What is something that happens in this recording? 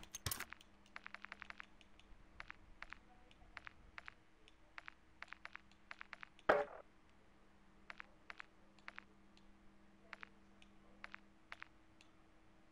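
Soft interface clicks tick as selections change.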